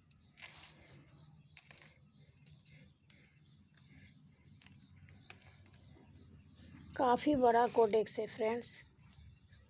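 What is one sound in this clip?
Hands crumble and rustle through loose, damp soil.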